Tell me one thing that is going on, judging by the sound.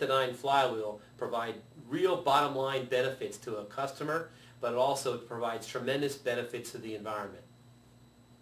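A man speaks calmly and clearly close to a microphone.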